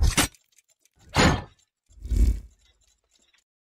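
A deep booming hit rings out and fades.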